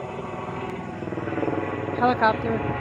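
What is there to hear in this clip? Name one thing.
A helicopter drones far overhead.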